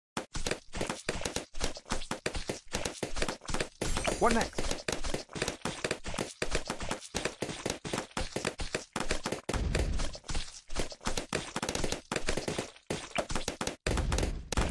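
Cartoon balloons pop in rapid bursts in a video game.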